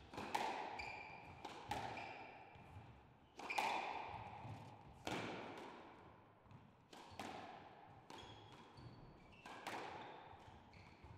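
A squash ball smacks sharply against walls and rackets, echoing loudly in a hard-walled court.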